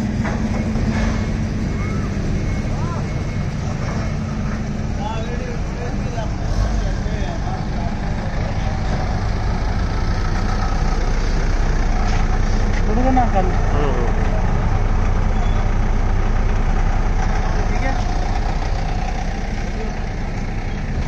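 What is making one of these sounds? A forklift engine idles and rumbles steadily nearby.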